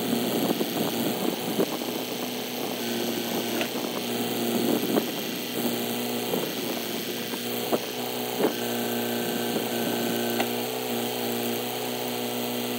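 A tractor's diesel engine rumbles steadily nearby.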